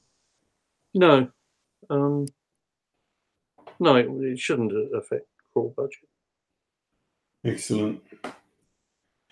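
A man speaks over an online call, pausing between phrases.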